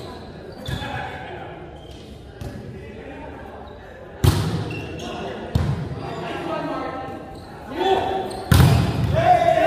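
A volleyball is struck hard, the thuds echoing in a large hall.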